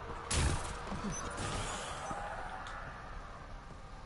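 A sliding door hisses open.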